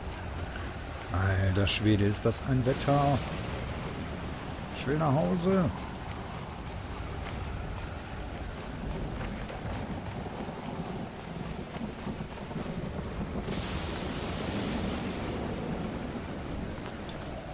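Waves wash and roll steadily nearby.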